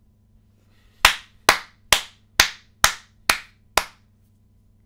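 A man claps his hands several times.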